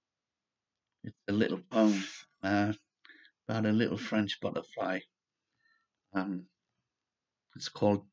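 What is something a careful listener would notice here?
An elderly man speaks calmly and close to a microphone, in short phrases with pauses.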